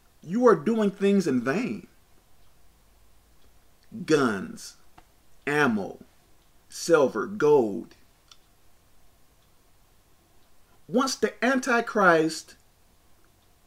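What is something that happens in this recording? A man speaks calmly and close to the microphone, in short bursts with pauses.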